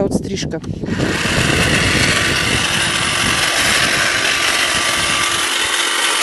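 An electric hedge trimmer buzzes steadily as it cuts plants.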